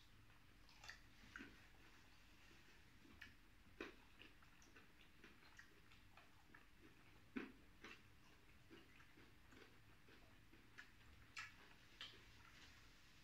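Fingers tear and crunch crispy fried food.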